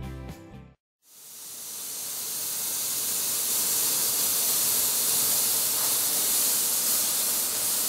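A cutting torch hisses steadily.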